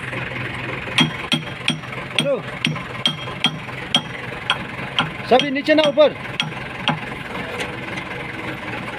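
Metal tools clink and tap against steel parts.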